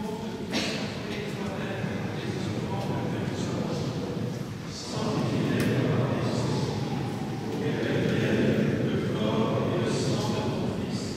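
Several older men chant a prayer together in unison through a microphone in a large echoing hall.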